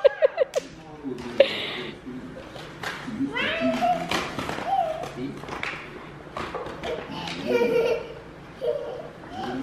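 A little girl squeals and laughs excitedly close by.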